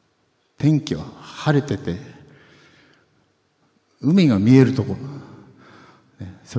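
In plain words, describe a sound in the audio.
A man speaks through a microphone, echoing in a large hall.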